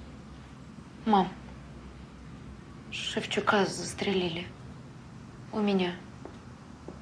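A young woman answers curtly, close by.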